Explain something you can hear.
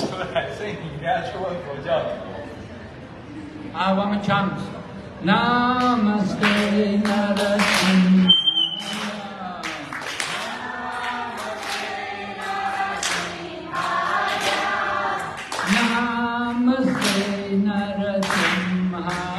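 An elderly man sings into a microphone, heard through a loudspeaker.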